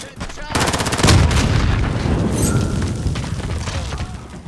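An explosion booms loudly and rumbles.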